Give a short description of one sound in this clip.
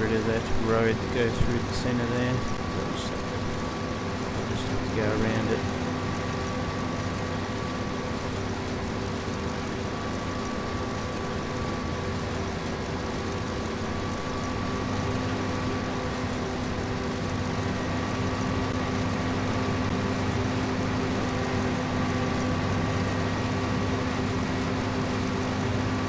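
A combine harvester engine drones steadily, rising slightly in pitch as it speeds up.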